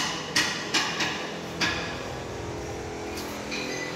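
Metal knocks and clicks as a hand adjusts a machine's foot.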